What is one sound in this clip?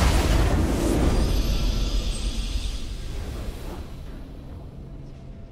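A triumphant victory fanfare swells and fades.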